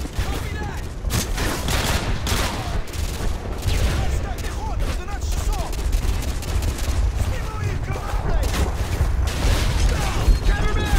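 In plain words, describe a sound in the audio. Gunshots crack and explosions rumble nearby.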